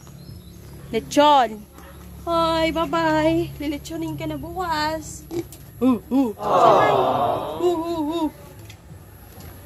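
A pig squeals loudly close by.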